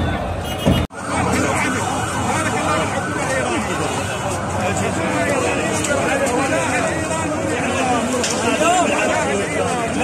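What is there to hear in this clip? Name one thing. A crowd of men chants together nearby.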